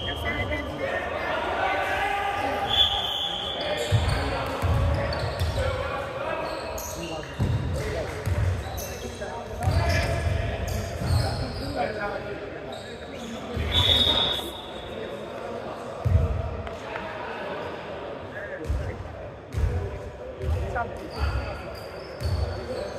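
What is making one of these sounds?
Men shout and call out to each other across the court.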